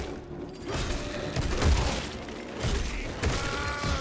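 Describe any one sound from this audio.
A fiery explosion bursts.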